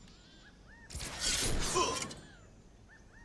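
A sword blade rings out with a sharp metallic swish.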